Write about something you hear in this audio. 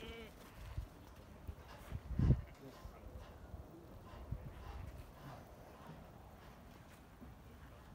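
Sheep shuffle their hooves on soft ground.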